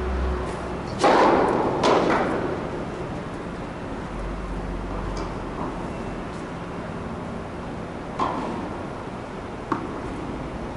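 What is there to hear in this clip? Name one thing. A tennis ball is struck with a racket with a sharp pop.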